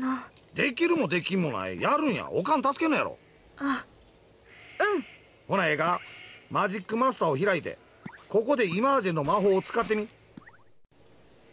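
A high, squeaky cartoon voice talks with animation.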